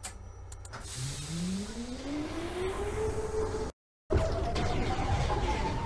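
A subway train's electric motors whine, rising in pitch as it pulls away.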